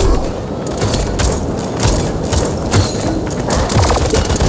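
A futuristic weapon fires rapid energy shots.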